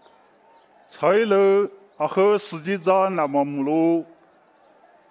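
A middle-aged man speaks loudly and forcefully nearby.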